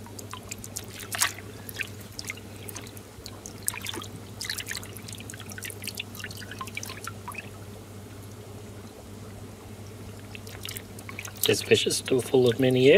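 Water splashes and drips as a fish is lifted from it.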